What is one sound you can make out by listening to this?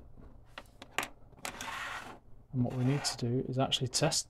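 Small circuit boards click and tap as they are set down on a hard table.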